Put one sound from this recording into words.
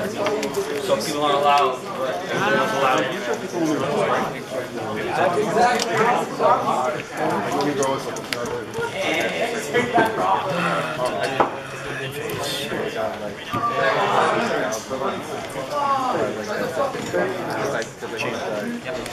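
Playing cards shuffle and slap softly on a table.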